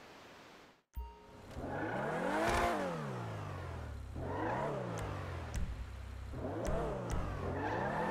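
A sports car engine runs, rising and falling in pitch.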